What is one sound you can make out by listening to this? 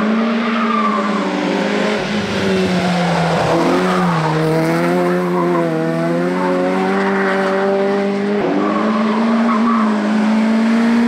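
A car engine revs loudly close by, its pitch rising and falling.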